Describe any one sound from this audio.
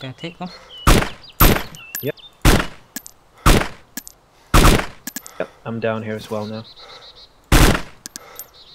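Rifle shots crack sharply, one after another.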